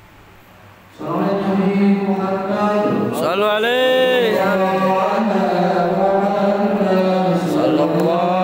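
A young man sings loudly into a microphone, heard through a loudspeaker in an echoing hall.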